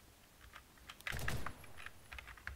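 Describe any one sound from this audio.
A rifle fires a short burst.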